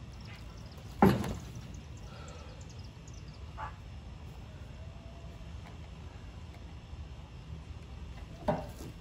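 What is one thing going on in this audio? A large log knocks against the edge of a trailer.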